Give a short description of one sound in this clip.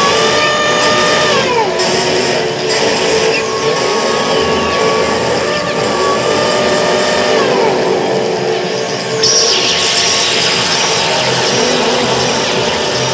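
Electronic synthesizer tones hum and slowly slide down in pitch.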